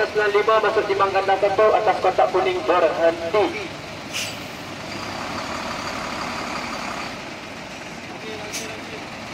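A truck engine idles steadily.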